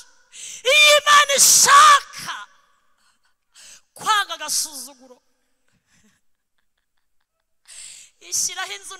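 A woman shouts with passion through a microphone.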